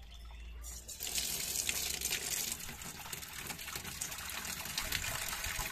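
A thin stream of water pours into a plastic tub.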